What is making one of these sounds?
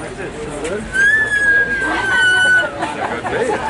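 A musical saw is bowed, singing a high tone that slowly slides down.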